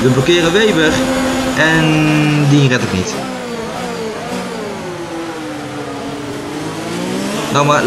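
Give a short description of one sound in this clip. A racing car engine screams at high revs, its pitch rising and dropping with each gear change.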